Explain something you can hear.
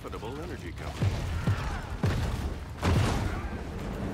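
Explosions boom in quick bursts.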